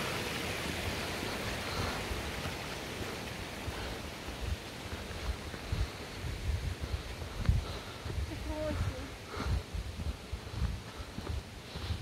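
Footsteps crunch on a gravel path.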